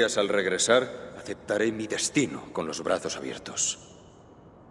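A man speaks calmly in a deep voice.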